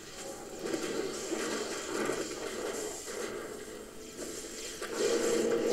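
Weapons clash and hit monsters repeatedly.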